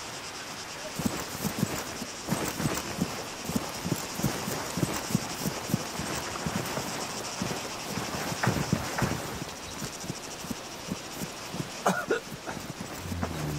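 Footsteps rustle through dry grass at a steady walking pace.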